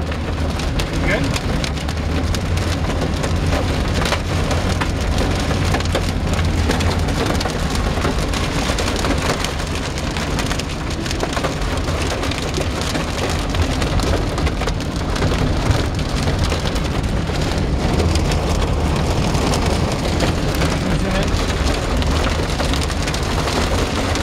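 Heavy rain pounds on a car's windshield and roof.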